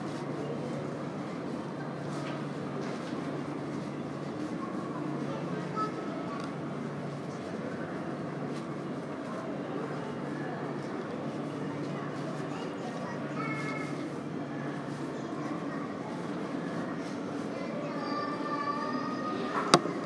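Faint distant voices murmur and echo in a large hall.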